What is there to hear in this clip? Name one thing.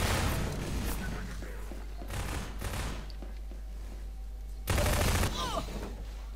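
A rifle fires in short bursts, echoing in a tunnel.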